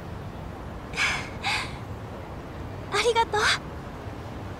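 A young woman speaks softly and briefly.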